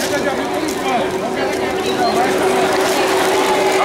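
Plastic packets crinkle as they are packed into crates.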